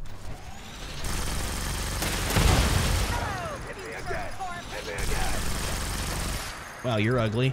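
A laser rifle fires in crackling bursts.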